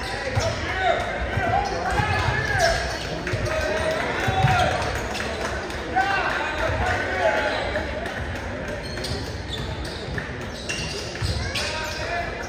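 A basketball thumps as it is dribbled.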